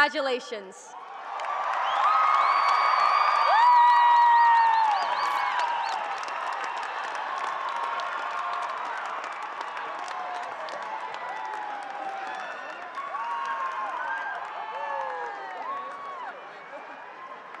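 A large crowd applauds.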